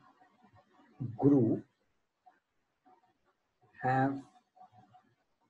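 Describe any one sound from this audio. A young man speaks calmly into a microphone, in short phrases.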